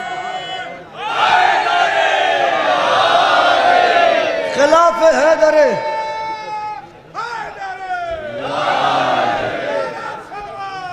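A young man chants in a long, wavering melody through an echoing loudspeaker system.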